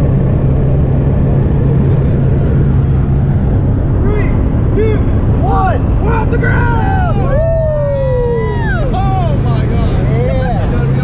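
An aircraft engine drones loudly and steadily.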